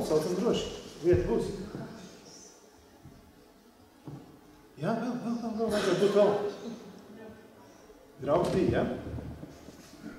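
A man speaks calmly into a microphone over loudspeakers, in an echoing room.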